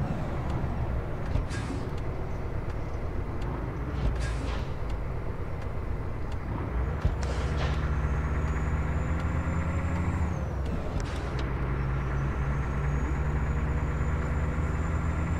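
A truck's diesel engine rumbles steadily as it drives.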